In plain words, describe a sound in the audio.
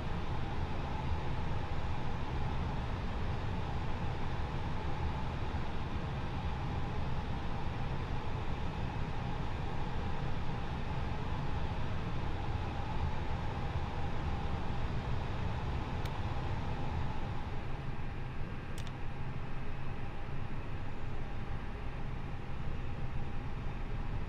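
Aircraft engines idle with a steady low rumble and hum.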